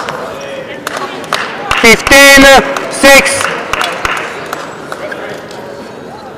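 A crowd claps and cheers in a large echoing hall.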